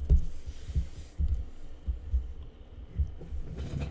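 Dice clatter as they are rolled onto a table.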